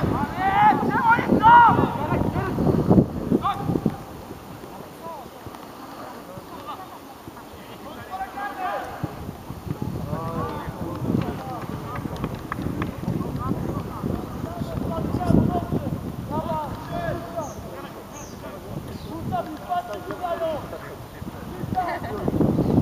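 Men shout to each other across an open outdoor field.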